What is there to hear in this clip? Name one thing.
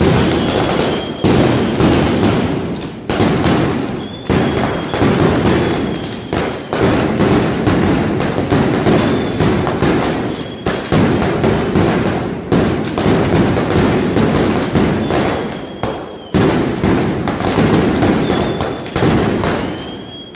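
A rapid barrage of mascletà firecrackers bangs and echoes between buildings.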